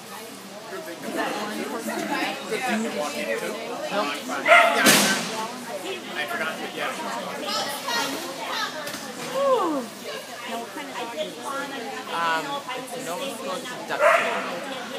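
A woman calls out commands to a dog in a large echoing hall.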